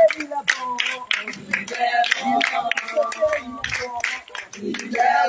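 Hands clap in a steady rhythm.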